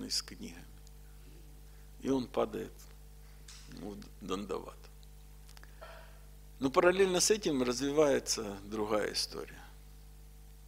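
A middle-aged man speaks calmly and with pauses into a microphone close by.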